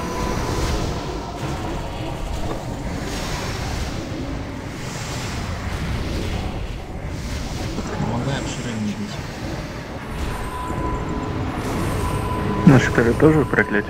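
Spells and weapons crash and crackle in a busy battle.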